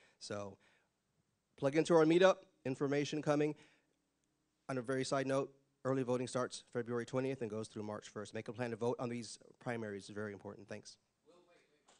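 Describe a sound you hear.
A man speaks calmly into a microphone over a loudspeaker.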